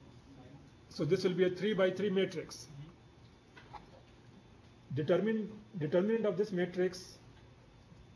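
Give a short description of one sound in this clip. An elderly man speaks calmly, like a lecturer, through a microphone.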